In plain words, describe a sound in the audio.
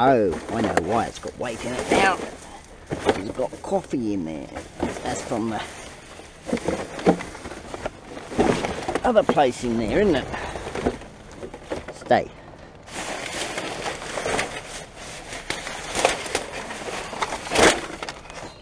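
Plastic bottles knock and clatter together.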